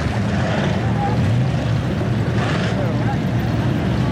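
Race car engines roar loudly close by.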